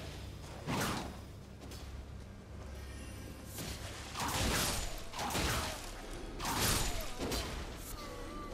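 Swords swing and whoosh through the air.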